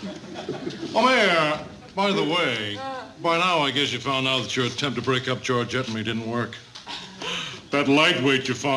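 An older man speaks loudly and with animation, close by.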